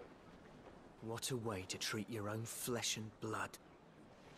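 A man speaks gruffly.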